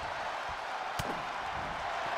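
A heavy body thuds onto a wrestling mat.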